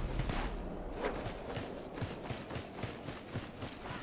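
Footsteps run quickly over dry ground.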